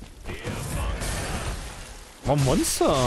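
A weapon swishes and strikes in a fight.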